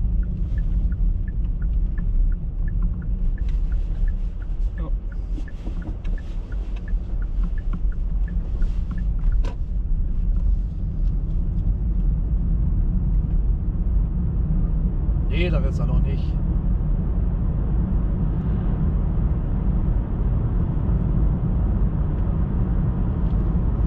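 A car engine hums steadily as the car drives.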